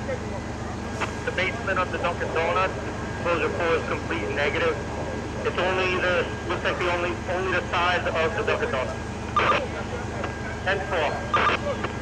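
Men talk loudly nearby in short bursts.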